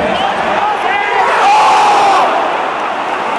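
A crowd roars as a goalkeeper dives for the ball.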